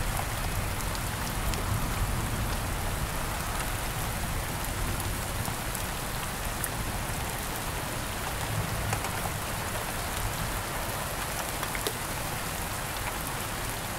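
Thunder rumbles low in the distance.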